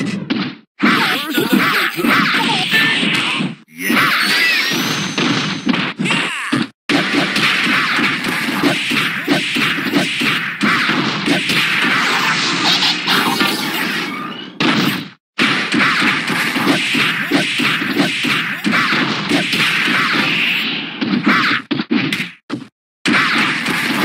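Fast game punches and energy blasts hit with sharp bursts.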